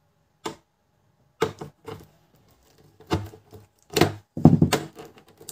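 A screwdriver knocks and scrapes against a plastic casing.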